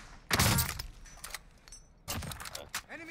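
A sniper rifle fires with loud booming cracks.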